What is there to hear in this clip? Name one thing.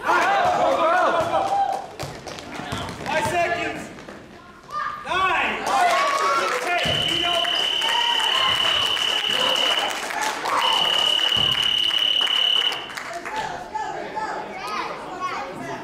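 A crowd of children and adults cheers and shouts in an echoing gym.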